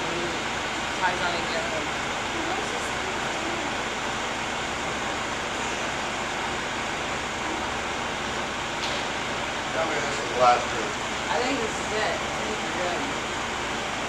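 A small crowd talks faintly in the distance in a large echoing hall.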